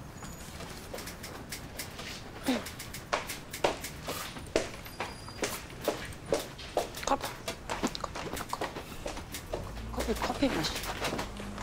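High heels click on a hard floor as a woman walks.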